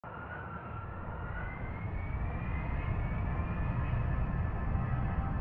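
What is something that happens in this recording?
A turbofan jet engine roars in flight, heard from inside an airliner cabin, with a high whine that slowly rises.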